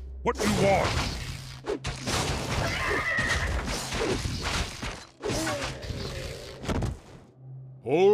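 Swords and axes clash in a battle.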